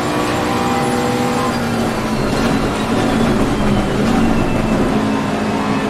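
A race car engine roars steadily at high revs, shifting in pitch.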